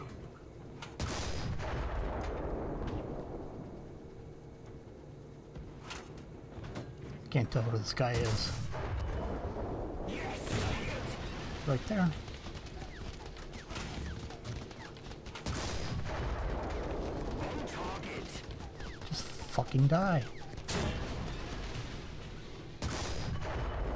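A tank cannon fires with a heavy boom, again and again.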